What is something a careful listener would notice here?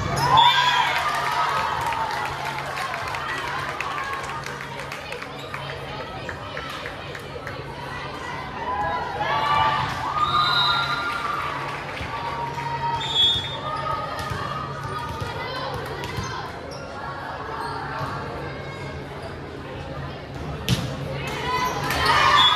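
A crowd of girls chatters and calls out in a large echoing gym.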